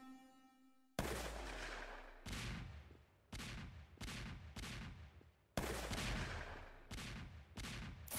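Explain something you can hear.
Guns fire in loud, crackling bursts again and again.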